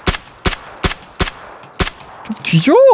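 A rifle fires several sharp shots in quick succession.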